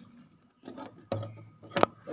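A hand bumps against a window frame.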